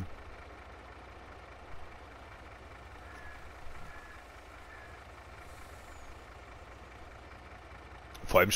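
A tractor engine rumbles steadily at idle.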